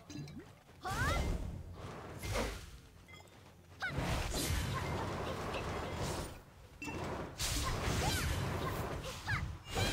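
Bursts of magic spells whoosh and crackle in quick waves.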